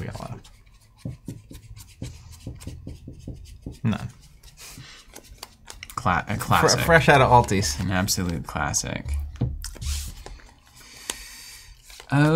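Playing cards slide and shuffle in hands.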